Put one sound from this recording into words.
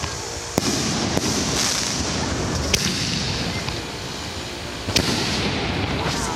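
Fireworks crackle and fizz as sparks burst.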